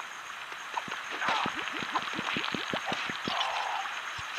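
Cartoonish punches and blasts thump in quick succession.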